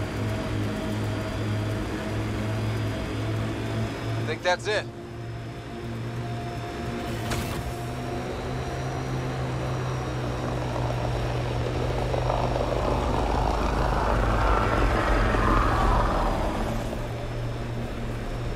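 Tyres rumble over sand and gravel.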